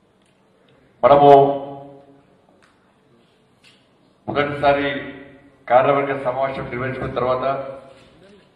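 A man speaks into a microphone over a loudspeaker, in measured phrases with pauses.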